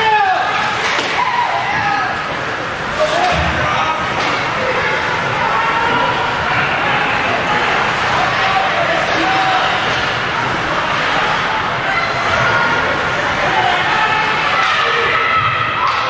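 Skates scrape across ice.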